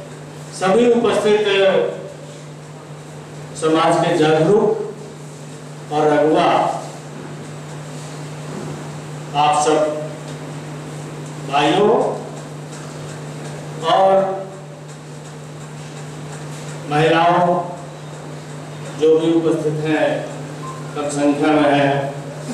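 A middle-aged man speaks slowly and deliberately into a microphone, with long pauses between phrases.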